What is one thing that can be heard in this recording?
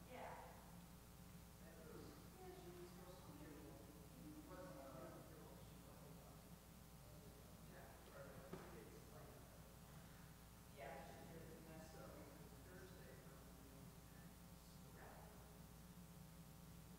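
An elderly woman speaks calmly in a room with some echo.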